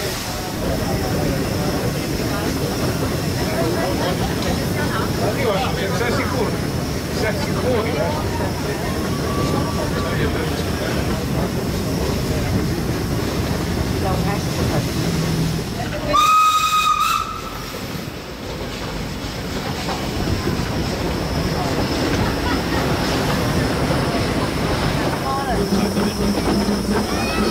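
A steam train rumbles and clatters steadily along the tracks.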